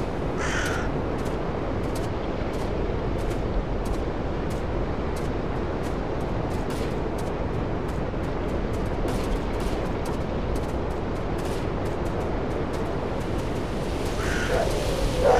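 Wind blows steadily through the trees outdoors.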